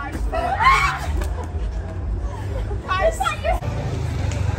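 Young women shout and laugh excitedly close by.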